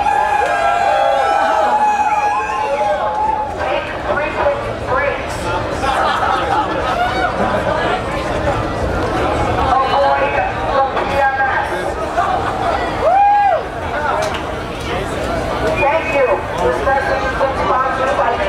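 Loud electronic dance music plays through big speakers in an echoing room.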